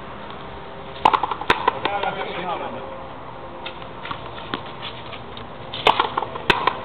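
A ball smacks sharply against a wall and racket, echoing outdoors.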